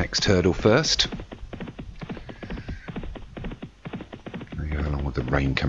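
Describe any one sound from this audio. Horses' hooves pound rapidly on turf as they gallop.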